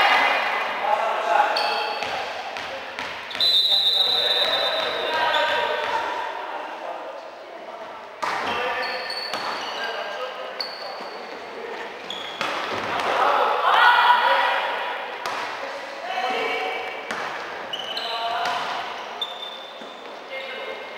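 Young women shout and call to each other in a large echoing hall.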